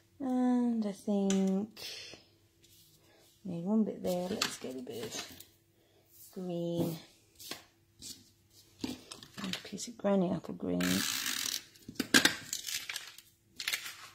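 Paper strips rustle and tap on a table.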